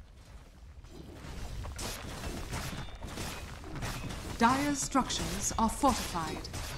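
Magical spells crackle and whoosh during a fight.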